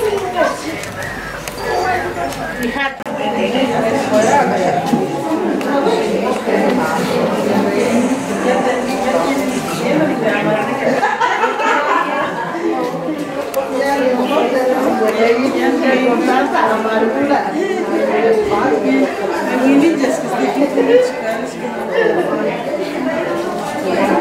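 Several women chatter and talk over one another nearby.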